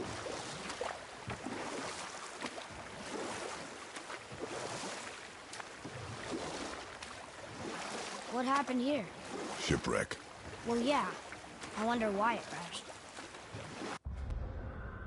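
Oars splash as a rowing boat moves through water.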